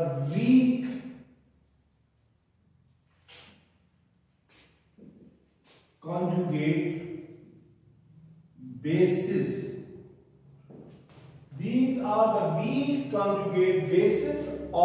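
An elderly man talks calmly, as if explaining a lesson.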